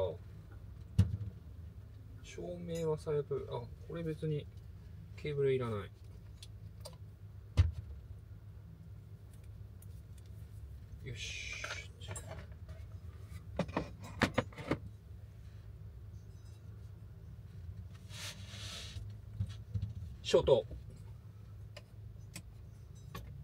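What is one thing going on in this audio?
Objects knock and click as a man handles them.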